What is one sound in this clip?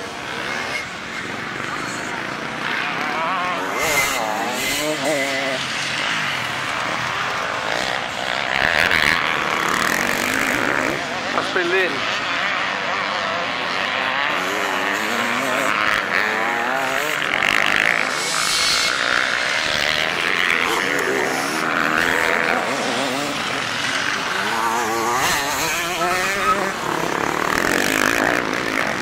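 Dirt bike engines rev and whine as riders climb a hill.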